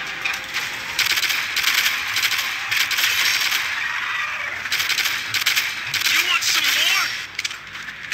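Rapid gunfire bursts out in quick volleys.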